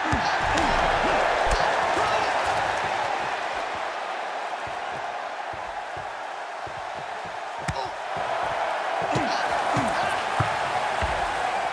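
A crowd roars and cheers steadily.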